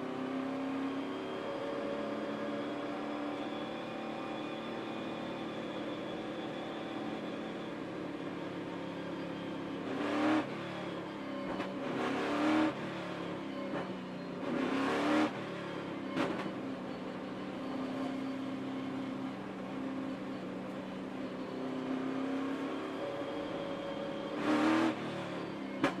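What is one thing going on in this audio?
A race car engine drones steadily up close, rising and falling in pitch.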